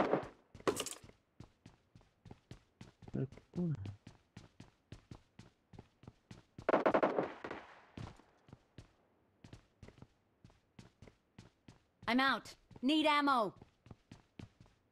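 Footsteps thud quickly and evenly on a hard floor.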